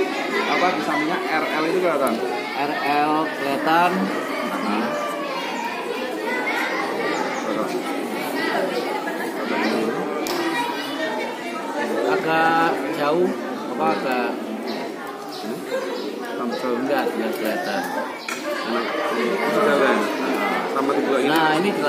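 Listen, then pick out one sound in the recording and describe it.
Many people chatter in the background.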